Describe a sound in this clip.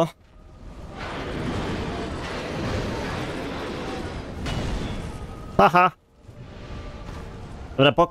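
Fire roars and whooshes in bursts.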